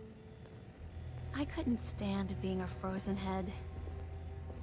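A young woman speaks cheerfully nearby.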